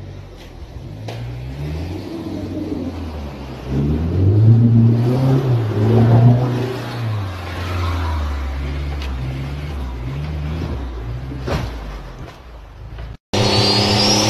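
A vehicle engine revs hard and falls as it churns through mud.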